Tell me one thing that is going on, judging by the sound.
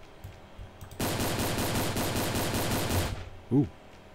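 A rapid burst of gunfire rattles.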